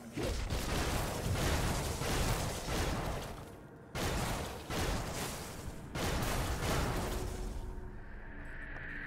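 Spells crackle and blast in a fight.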